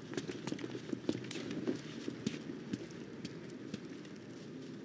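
Heavy armoured footsteps thud on wet pavement.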